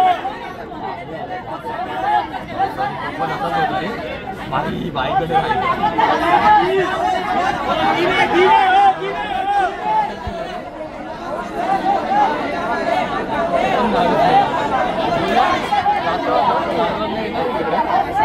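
Young men argue loudly with each other nearby.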